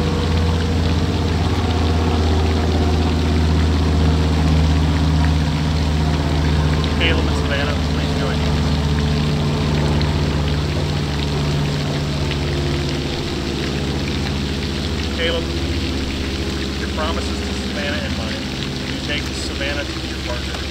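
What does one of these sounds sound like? A man speaks calmly and clearly, a little way off, outdoors.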